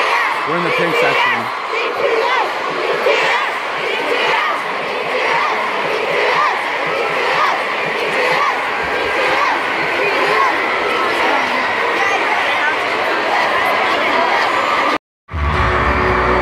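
A large crowd cheers and screams loudly in a big echoing arena.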